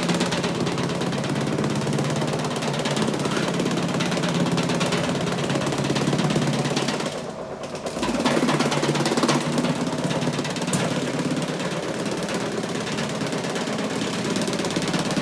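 A carpet cleaning machine hums and whirs steadily as it scrubs a rug.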